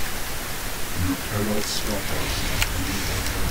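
A young man speaks briefly and casually into a microphone.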